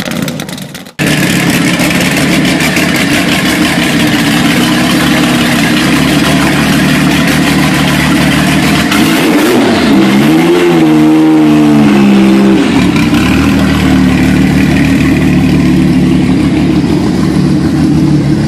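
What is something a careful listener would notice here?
A sports car engine idles with a deep, rumbling exhaust.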